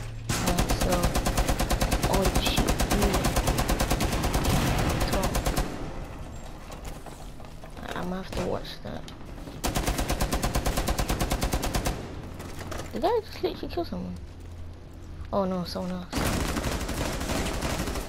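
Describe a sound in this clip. A rifle fires in long, rapid bursts.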